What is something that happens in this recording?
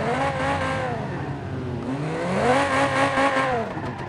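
Metal crunches as two cars collide.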